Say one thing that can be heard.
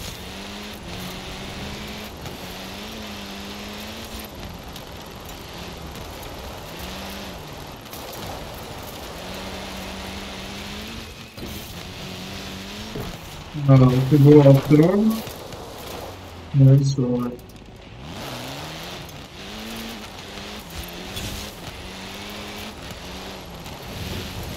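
A rally car engine revs hard, rising and falling with each gear change.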